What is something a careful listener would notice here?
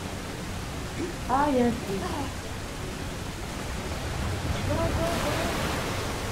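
A young woman speaks briefly and animatedly into a close microphone.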